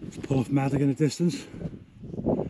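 A man speaks outdoors.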